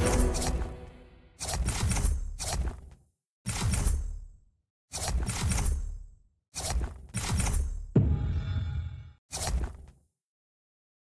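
Short electronic game sound effects burst out again and again.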